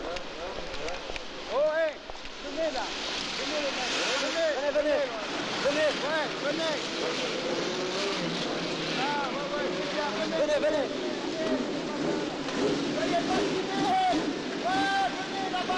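A crowd chatters and shouts loudly around.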